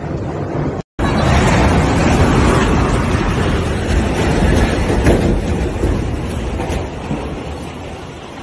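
A huge crane crashes down with a deep, long rumble and metal crunching.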